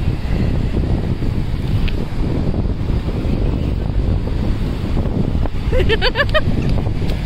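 Waves wash steadily onto the shore.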